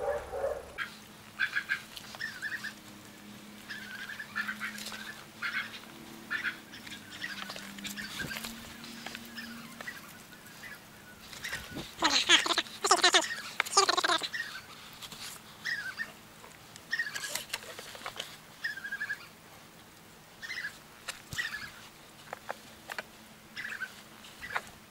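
Water from a garden hose splashes softly onto plants and soil.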